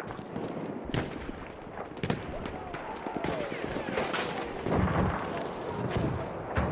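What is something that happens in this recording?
Gunshots crack sharply several times.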